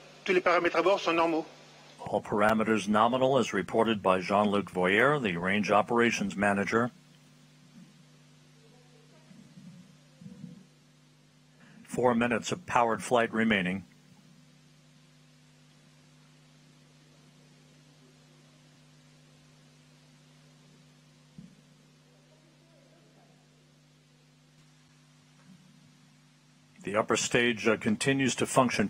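A man speaks calmly and briefly over a radio link.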